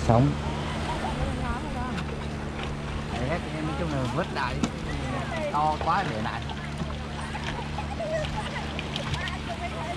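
Water splashes in a metal basin.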